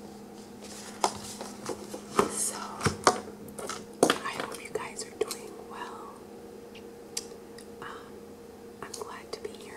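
A young woman makes wet mouth sounds and chews close to a microphone.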